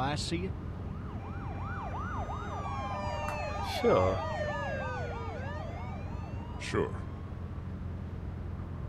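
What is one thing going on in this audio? A police siren wails as a car passes.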